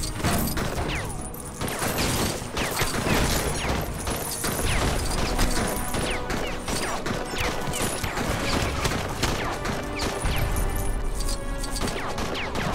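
Coins and studs jingle and clink as they scatter.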